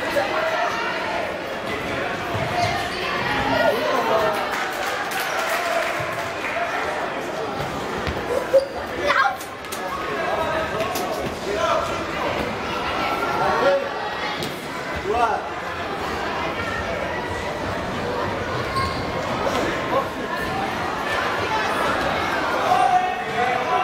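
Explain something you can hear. A ball thumps against the floor and is kicked.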